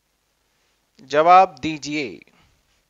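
A man speaks close to a clip-on microphone, briefly and calmly.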